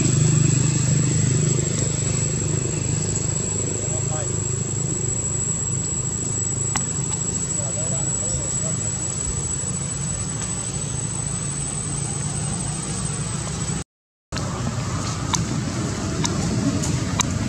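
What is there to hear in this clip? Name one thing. Leaves rustle as a monkey moves through a tree.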